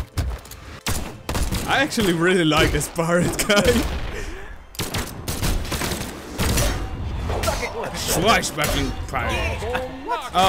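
Cartoon fighters' blows land with sharp thuds and whooshes.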